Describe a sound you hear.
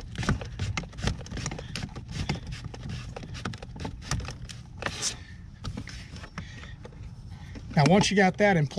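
Hard plastic parts click and rattle as they are fitted together close by.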